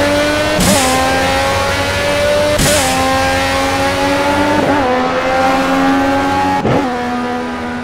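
A racing car engine roars loudly, rising in pitch and dropping sharply at each gear change.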